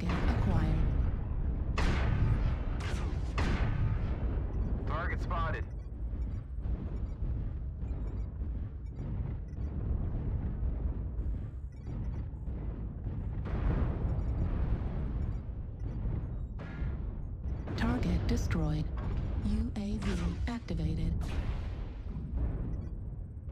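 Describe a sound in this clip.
A heavy mech's engine rumbles low and steady.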